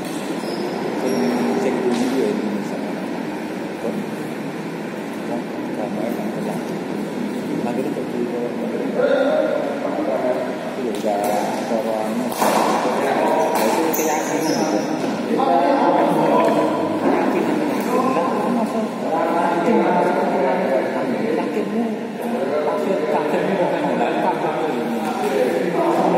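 Men talk and call out across the hall.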